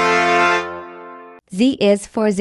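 A toy train whistle toots.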